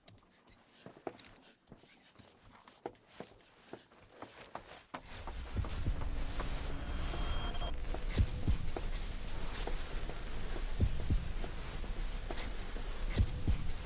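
Footsteps thud on a wooden floor and stairs.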